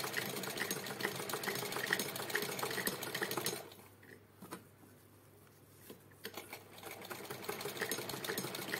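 A sewing machine rattles and clatters as it stitches.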